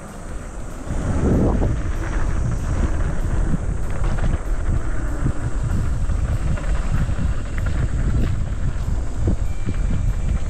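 Bicycle tyres crunch and rattle over a bumpy dirt trail.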